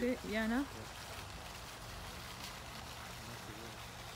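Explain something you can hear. A small fountain splashes steadily into a pond.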